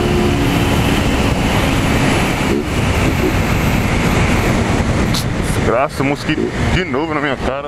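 A motorcycle engine roars steadily at speed.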